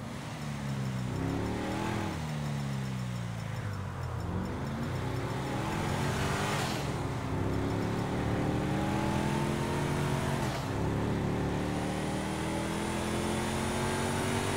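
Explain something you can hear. A car engine hums and revs, rising and falling in pitch as gears shift.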